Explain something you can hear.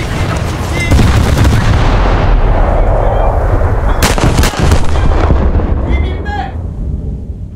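A heavy explosion booms and rumbles low, then slowly fades.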